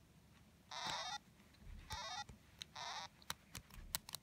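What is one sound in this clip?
A video game plays short electronic beeping tones through a television speaker.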